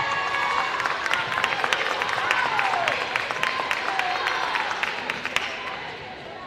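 A volleyball is struck with loud slaps.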